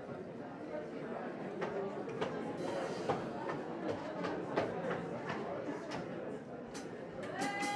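Drums are tapped quickly and lightly.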